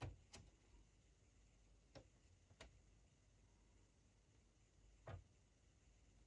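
Probe tips click against metal parts.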